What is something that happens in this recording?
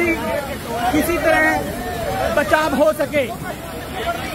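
A man shouts excitedly.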